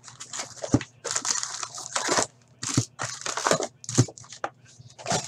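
Cardboard rustles and scrapes as a box is opened.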